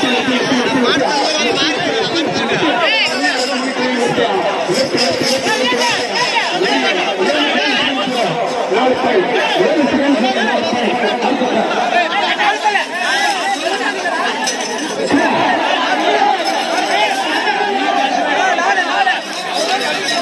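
A large outdoor crowd of men and boys shouts and cheers loudly close by.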